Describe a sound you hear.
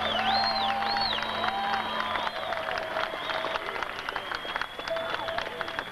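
A rock band plays live on an outdoor stage.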